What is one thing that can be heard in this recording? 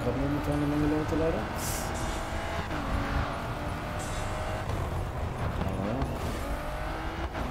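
A racing car engine roars at high revs and shifts gears.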